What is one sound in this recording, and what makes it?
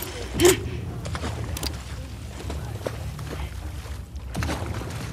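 Footsteps move slowly across a hard floor.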